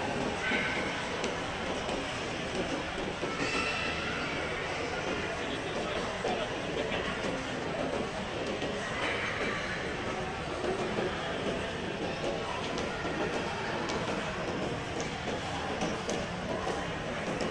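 A crowd murmurs faintly in a large echoing hall.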